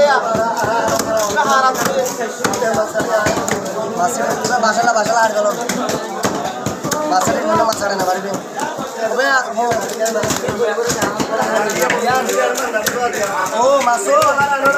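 A heavy knife chops through fish on a wooden block with dull thuds.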